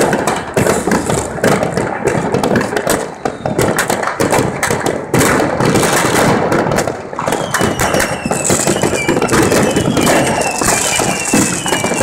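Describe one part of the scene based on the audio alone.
Rockets whistle as they shoot up.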